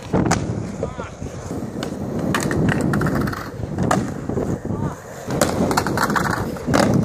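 Skateboards clack and slap on concrete.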